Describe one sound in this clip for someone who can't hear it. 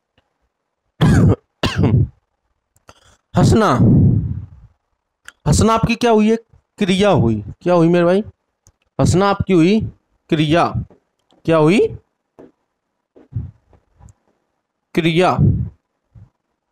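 A young man speaks with animation through a close headset microphone.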